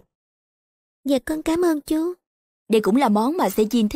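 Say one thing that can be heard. A woman speaks firmly at close range.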